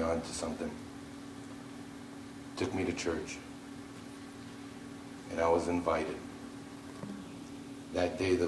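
A man speaks through a microphone in a large echoing hall, in short bursts with pauses.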